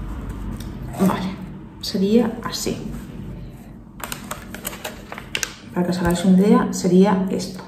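A woman talks calmly into a close microphone.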